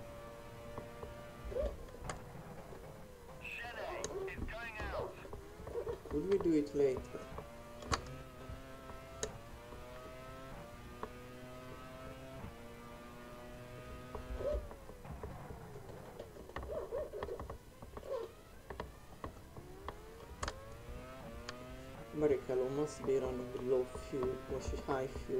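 A racing car engine whines, rising in pitch as it speeds up and dropping with each gear change and braking.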